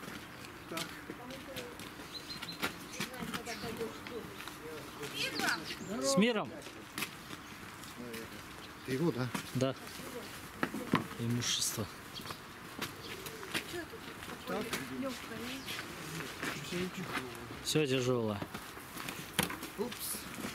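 An elderly man talks nearby, outdoors.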